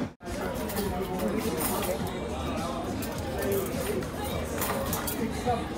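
A leash handle scrapes and clatters on a tiled floor.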